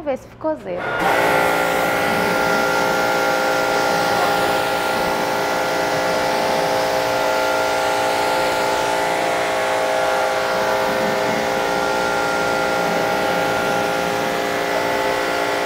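A pressure washer pump hums steadily.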